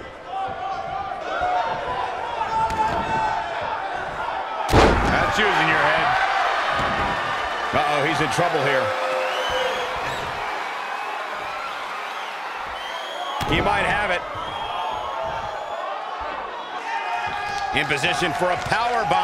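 A large crowd cheers and chants throughout.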